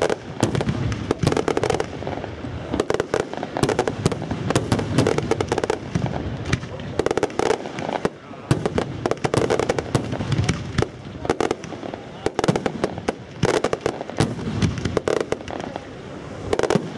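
Fireworks crackle and pop in rapid bursts close by.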